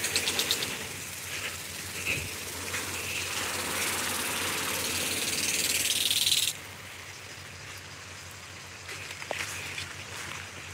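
Wind gusts through leafy plants, rustling them.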